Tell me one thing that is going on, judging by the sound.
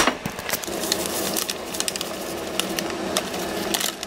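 Flour pours from a paper bag into a measuring cup.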